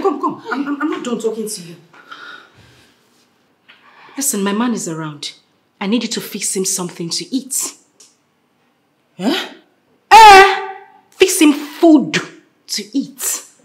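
A woman speaks with agitation close by.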